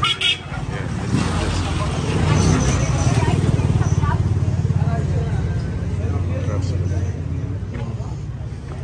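A motorbike engine rumbles close by.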